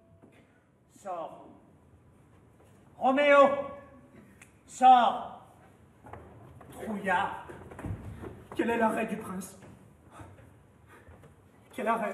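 A man speaks loudly and with animation.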